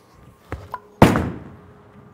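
A bowling ball thuds onto the lane.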